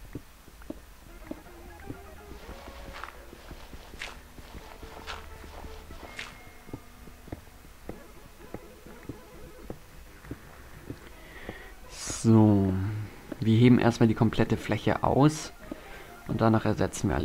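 Digging sounds tap rapidly and steadily as blocks are broken.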